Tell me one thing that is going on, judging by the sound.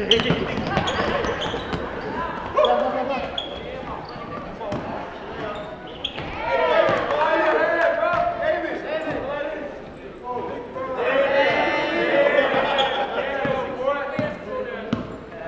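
Spectators and players call out in a large echoing hall.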